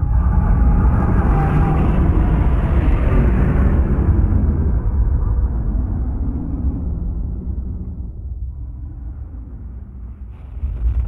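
Jet engines roar loudly as an aircraft flies past and fades away.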